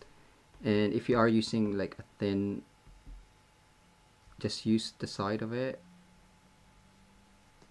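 A marker pen scratches lightly across paper.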